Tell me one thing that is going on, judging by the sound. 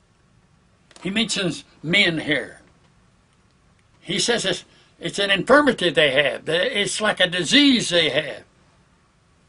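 An elderly man speaks calmly and close to a microphone, in short bursts with pauses.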